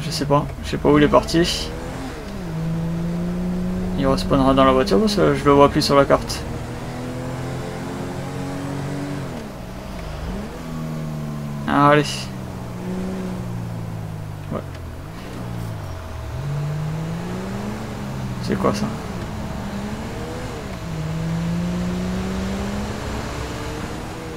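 A van engine accelerates and shifts through its gears.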